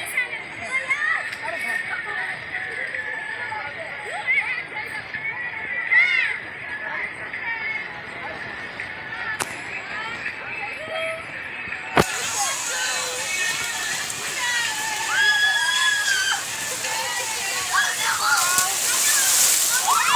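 Children shout and squeal with excitement outdoors.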